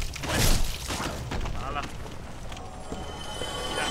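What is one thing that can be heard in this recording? A sword strikes with a sharp clang.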